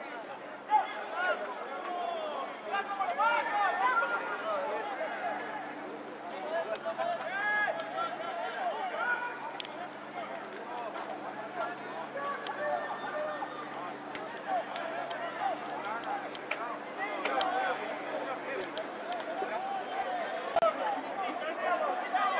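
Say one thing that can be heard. Young men shout to each other outdoors during play.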